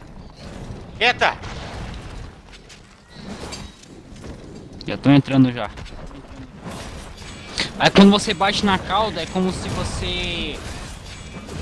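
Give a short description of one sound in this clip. A huge beast roars and growls loudly.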